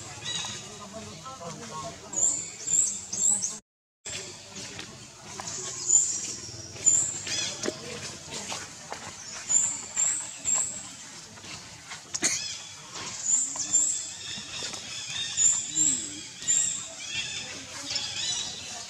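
Dry leaves rustle as monkeys move about.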